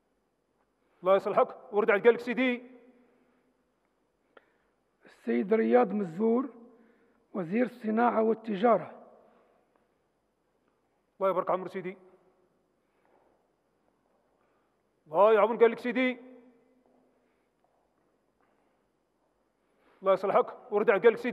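A man calls out in short bursts, heard through a loudspeaker in a large echoing hall.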